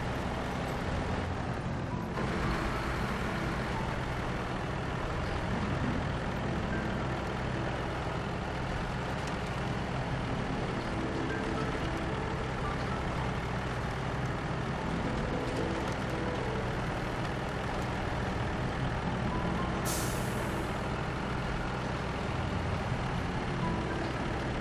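A heavy truck engine rumbles and strains steadily.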